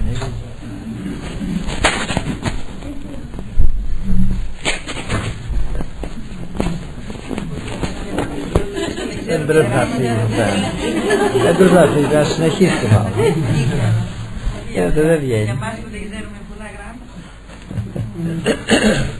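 An elderly man speaks with feeling, close by.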